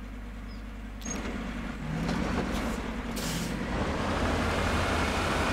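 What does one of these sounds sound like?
A truck engine rumbles steadily as the truck drives over rough ground.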